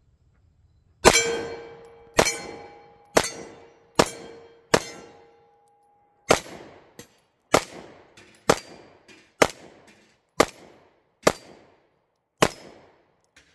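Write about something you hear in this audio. A pistol fires a quick string of loud shots outdoors, each one echoing briefly.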